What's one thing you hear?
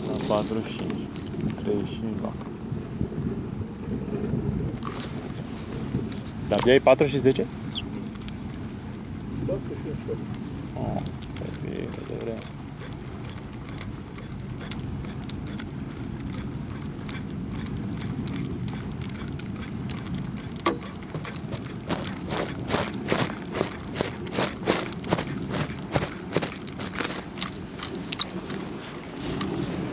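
Wind rumbles outdoors over open water.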